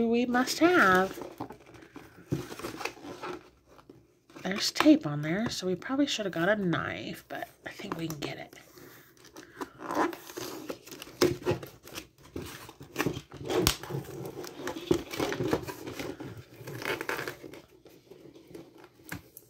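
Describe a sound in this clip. Hands tear open a cardboard box.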